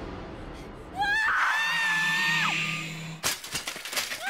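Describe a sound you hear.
A young woman screams in surprise.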